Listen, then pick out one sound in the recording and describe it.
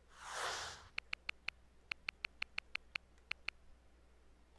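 Short electronic menu ticks sound in quick succession.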